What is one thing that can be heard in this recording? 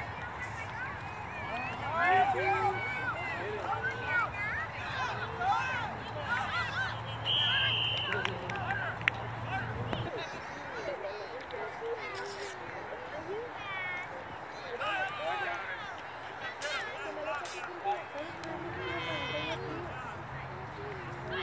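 Children and adults shout and cheer at a distance outdoors.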